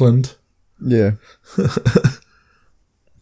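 A man speaks briefly in a calm voice.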